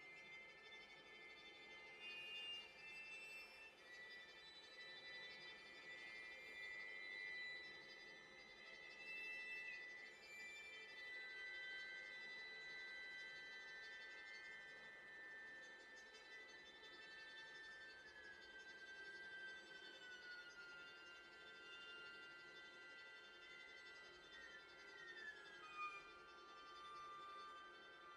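A string quartet plays slow, sustained music in a softly echoing room.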